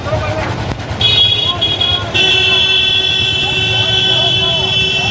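A vehicle horn blares repeatedly.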